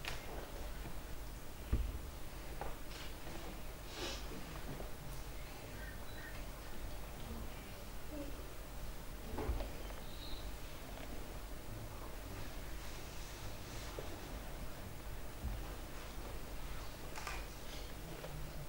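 Small objects click and knock faintly now and then.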